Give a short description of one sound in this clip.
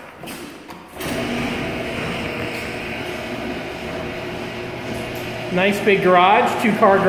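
A garage door opener motor hums steadily.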